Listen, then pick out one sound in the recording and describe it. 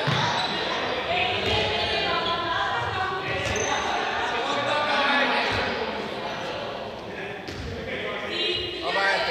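Voices of young people chatter and call out in a large echoing hall.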